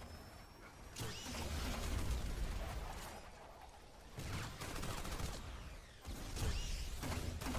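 Explosions boom loudly with deep rumbling.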